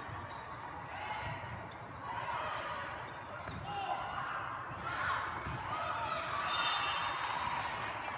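A volleyball thumps off hands and arms.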